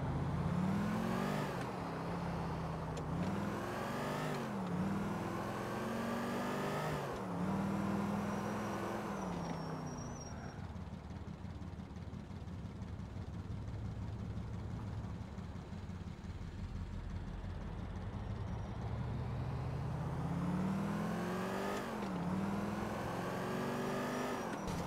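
A car engine revs up and shifts gears repeatedly while accelerating.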